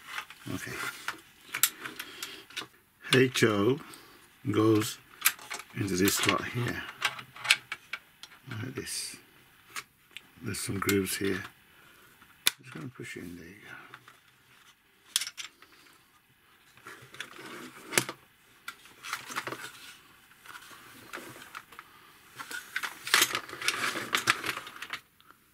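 Plastic parts click and rattle as they are handled and fitted together.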